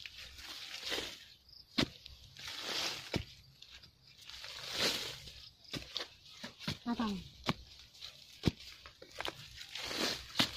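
A stick scrapes and pokes into dry soil and leaves.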